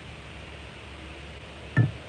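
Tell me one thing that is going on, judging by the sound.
Liquid trickles into a glass jug.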